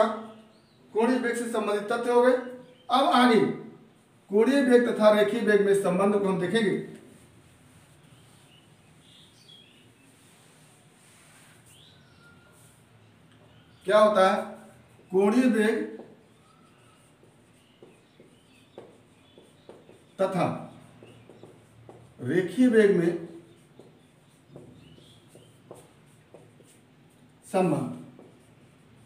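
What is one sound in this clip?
A man speaks clearly and steadily nearby, in short bursts with pauses.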